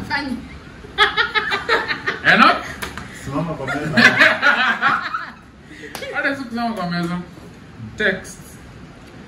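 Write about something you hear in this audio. A group of young men and women laugh loudly together.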